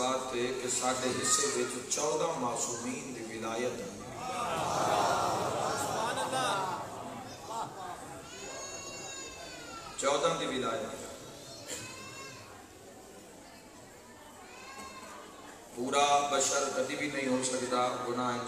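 A man speaks passionately into a microphone over loudspeakers in a large echoing hall.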